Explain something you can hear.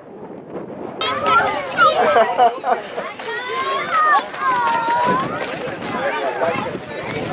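A woman and children chatter nearby.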